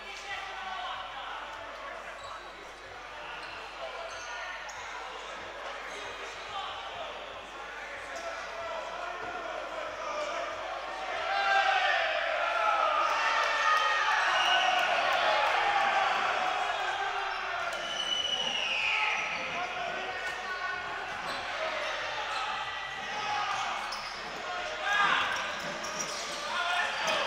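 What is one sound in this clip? A crowd in the stands cheers and shouts, echoing through a large hall.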